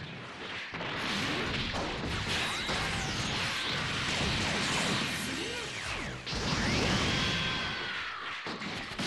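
Energy blasts roar and crackle loudly.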